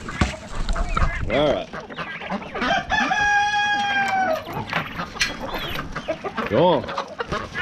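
Chickens cluck and squawk close by.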